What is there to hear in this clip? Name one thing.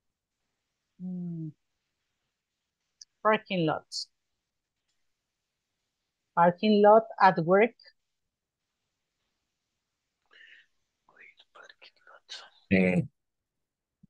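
A woman speaks slowly and clearly over an online call, dictating in short phrases.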